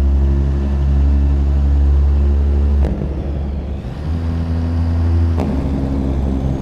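A heavy truck engine drones steadily, dipping briefly as gears change.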